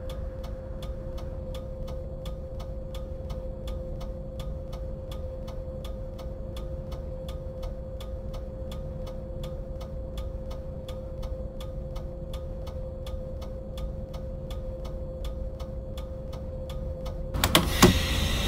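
A bus engine idles steadily.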